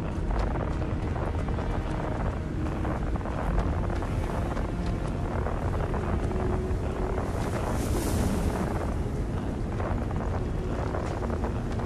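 Boots crunch on rocky ground with steady footsteps.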